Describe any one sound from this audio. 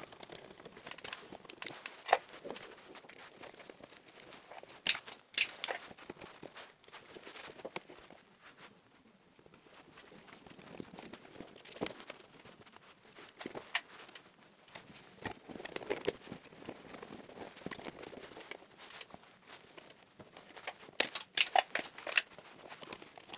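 Wires and small parts click and rustle as hands work in an electrical panel.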